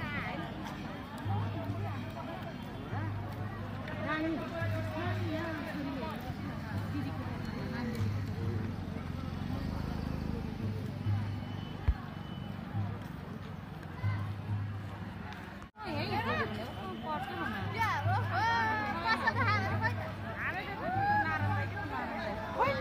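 A crowd of men and women chatter and call out outdoors.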